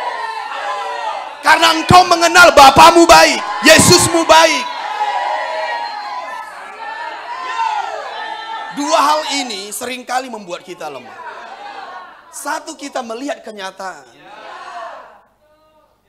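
A middle-aged man preaches with passion through a microphone in an echoing hall, at times shouting.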